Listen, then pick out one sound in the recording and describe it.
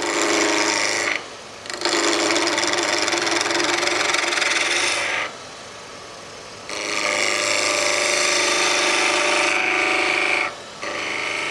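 A chisel scrapes and hisses against wood spinning on a lathe, in bursts with short pauses.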